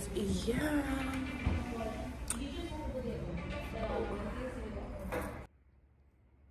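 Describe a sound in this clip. A young woman talks animatedly and close up.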